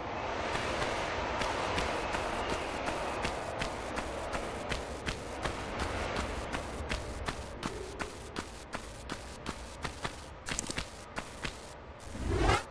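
Quick footsteps slap on a stone floor in an echoing passage.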